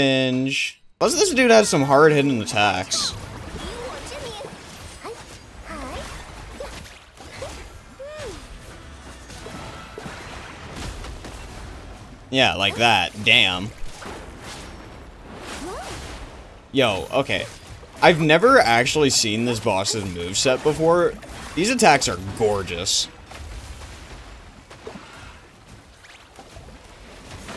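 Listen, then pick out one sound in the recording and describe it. Magical attacks whoosh and crash in a fast fight.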